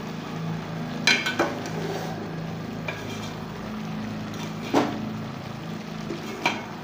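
A metal spoon scrapes and clinks against a metal pot.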